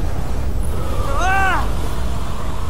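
A boy shouts with effort.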